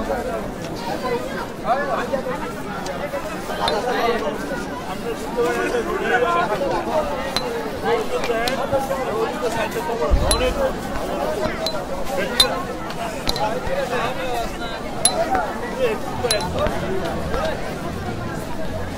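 A crowd of men chants and shouts loudly outdoors.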